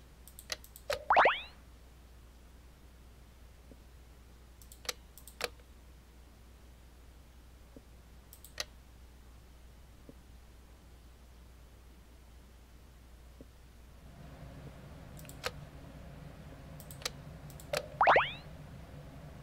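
A quick rising whoosh sounds as a tile combines.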